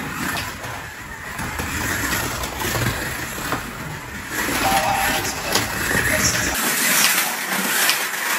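Small electric racing cars whir around a track.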